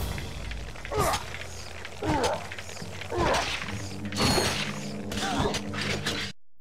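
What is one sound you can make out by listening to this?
Clanging blows and sharp screeches ring out in a fight.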